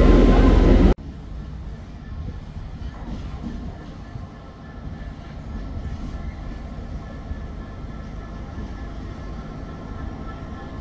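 A diesel locomotive hums steadily in the distance as it approaches slowly.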